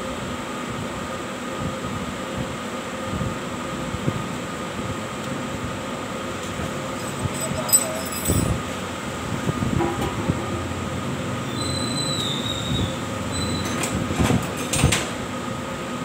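Metal parts clank and click.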